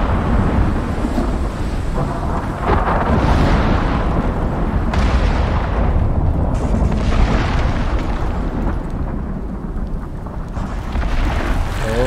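A torch flame crackles and roars close by.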